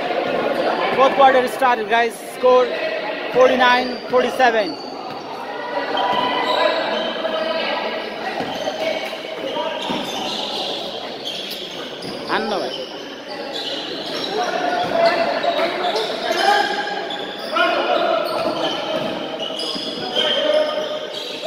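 A basketball bounces on a hard indoor court.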